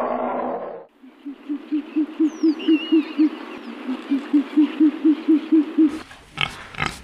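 An owl hoots in a low, steady rhythm.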